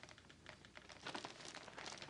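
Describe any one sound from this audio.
A telephone receiver is lifted with a soft click.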